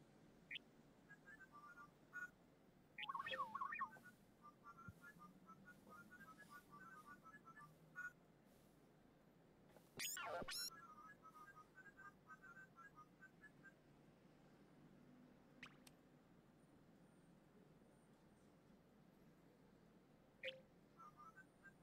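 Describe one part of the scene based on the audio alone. Soft electronic beeps patter rapidly, like a game's chatter.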